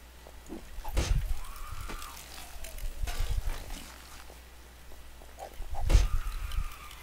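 A heavy club thuds into a body with a wet smack.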